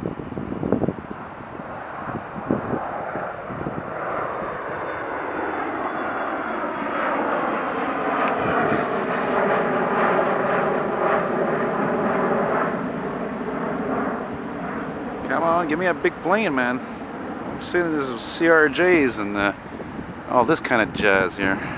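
A jet engine roars loudly as a plane climbs overhead and slowly fades into the distance.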